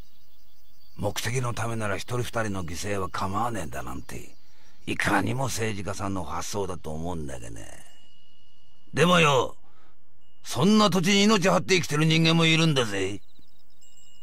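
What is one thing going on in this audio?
An elderly man speaks gruffly and with animation.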